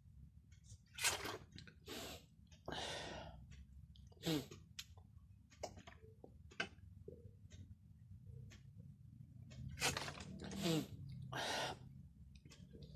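A man exhales loudly after drinking.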